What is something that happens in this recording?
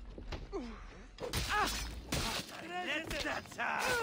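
Blades clash and strike in a close fight.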